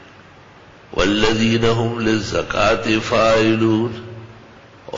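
An elderly man recites in a drawn-out, chanting voice.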